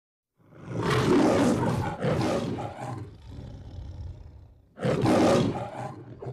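A lion roars loudly, twice, with a growl in between.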